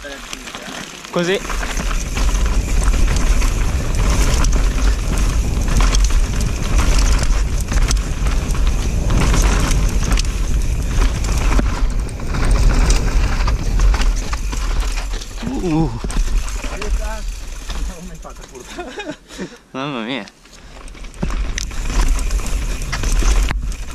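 A mountain bike's frame and chain rattle over bumps.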